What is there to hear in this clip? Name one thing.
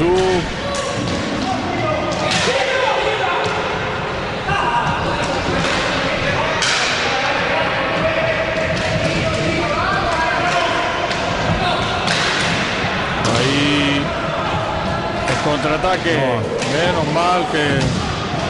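Roller skate wheels rumble across a wooden floor.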